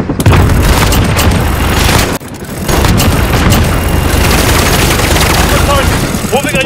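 A rapid-firing minigun roars in long bursts.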